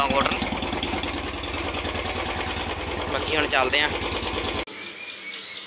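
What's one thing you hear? A motorcycle engine idles with a steady rapid throb.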